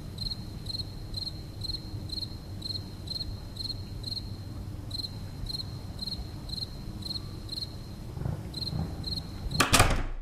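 Soft footsteps tap at a steady, even pace.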